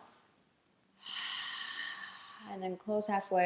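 A young woman breathes out slowly and audibly.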